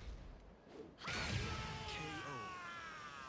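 A knockout blast whooshes and crackles loudly.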